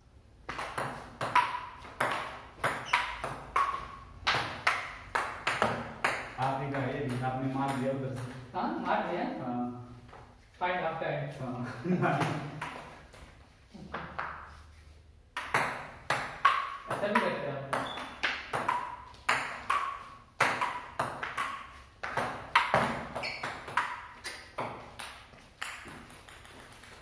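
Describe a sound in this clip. A ping-pong ball clicks back and forth on paddles and a table in a quick rally.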